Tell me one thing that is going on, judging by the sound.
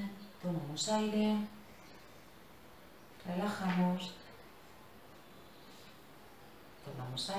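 A woman speaks calmly and clearly in short bursts.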